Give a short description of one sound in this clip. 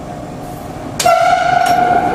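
A sudden loud bang sounds as a train enters a tunnel.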